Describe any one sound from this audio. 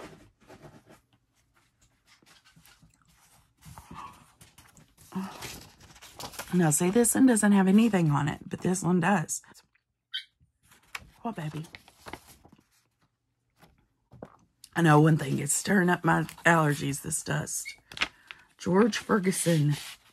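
Paper rustles and crinkles as sheets are handled.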